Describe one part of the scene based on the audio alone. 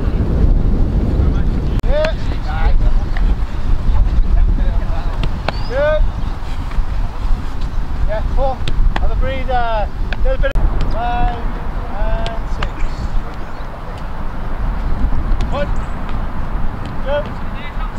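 A football thuds as it is kicked and caught.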